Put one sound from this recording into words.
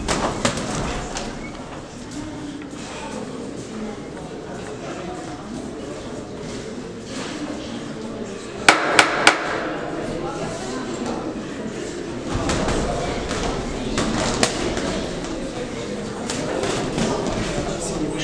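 Boxing gloves thump as punches land.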